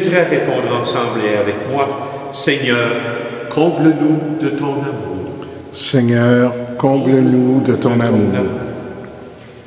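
An elderly man chants loudly and steadily into a microphone in a reverberant hall.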